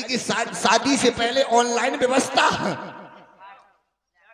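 A man speaks loudly into a microphone over a loudspeaker.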